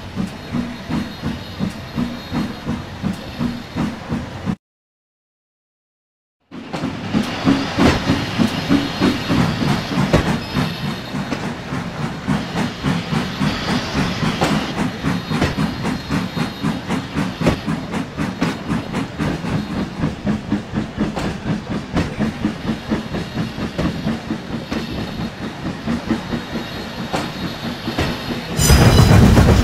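A steam locomotive chuffs in a fast, steady rhythm.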